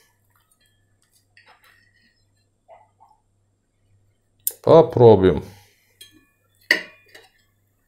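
A knife scrapes on a plate.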